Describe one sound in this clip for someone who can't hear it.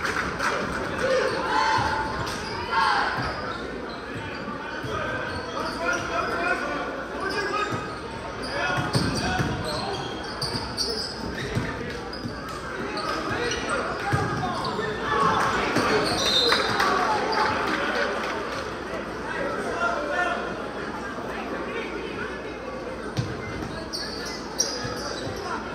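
A crowd chatters and cheers throughout a large echoing gym.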